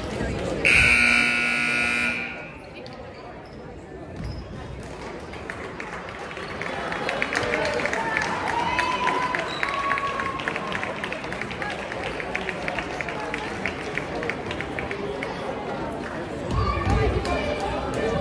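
A crowd of spectators murmurs and chatters.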